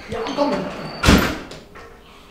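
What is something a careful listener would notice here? A wooden door slams shut.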